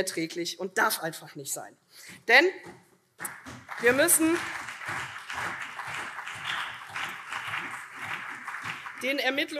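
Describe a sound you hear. A middle-aged woman speaks into a microphone in a formal, measured tone.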